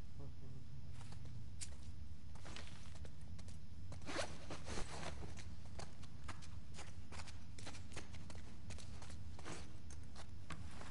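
Footsteps scuff slowly on a hard floor.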